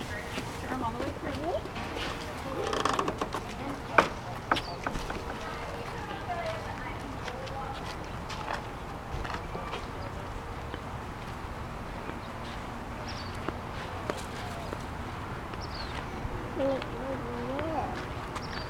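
A toddler babbles and squeals close by.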